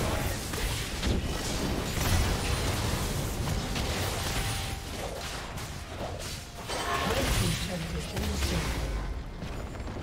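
Game combat effects crash and zap in quick bursts.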